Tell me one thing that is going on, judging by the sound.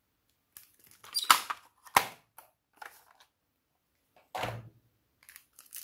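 Plastic toy pieces click and clatter against each other.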